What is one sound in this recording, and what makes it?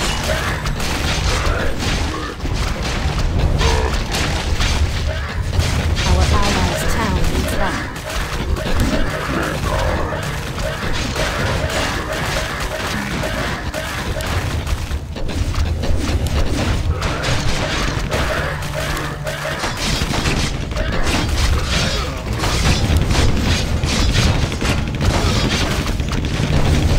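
Weapons clash and spells burst in a fierce battle.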